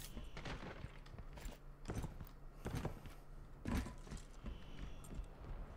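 Footsteps thud on a hard floor in a video game.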